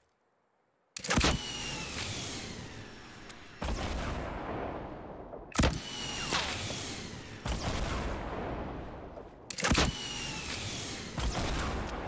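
A rocket launcher fires with loud booming blasts, again and again.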